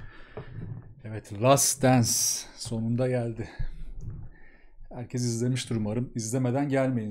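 A young man speaks calmly and close up, into a microphone.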